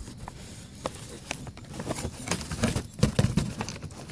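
Cloth rustles and brushes close by.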